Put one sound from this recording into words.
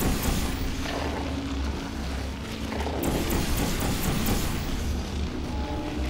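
Blobs of gel splat wetly onto hard surfaces.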